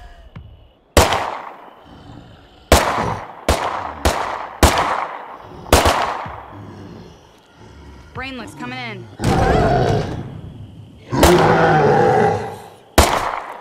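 Pistol shots fire sharply, one after another, with short echoes.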